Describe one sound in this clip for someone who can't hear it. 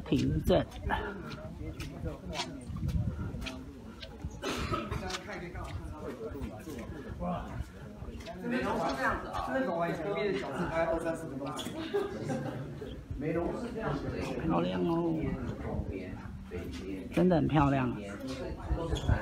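A group of adult men and women chat casually outdoors.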